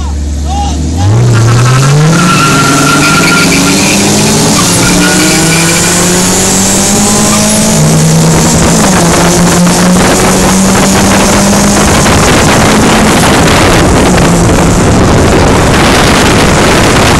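A car engine revs hard and roars as the car accelerates through the gears.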